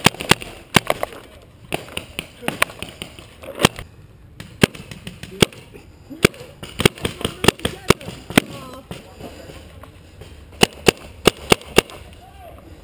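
A paintball marker fires in quick sharp pops.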